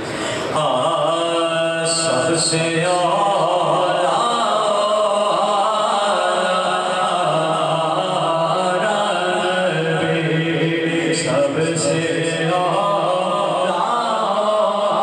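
A young man chants in a sustained singing voice through a microphone and loudspeakers.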